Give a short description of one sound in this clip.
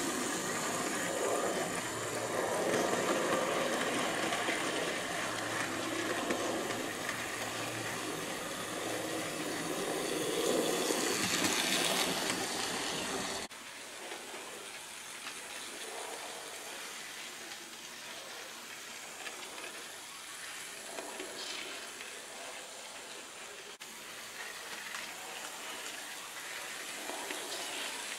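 A model train clicks over the rail joints.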